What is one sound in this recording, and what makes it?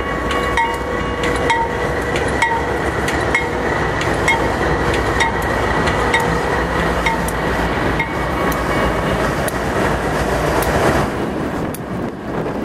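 A diesel locomotive rumbles loudly as it rolls past close by.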